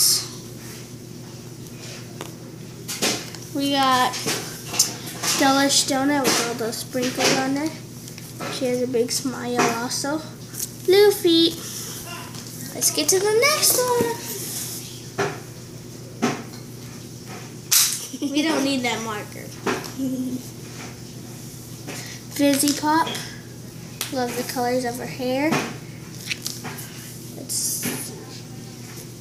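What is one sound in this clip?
A second young girl speaks nearby.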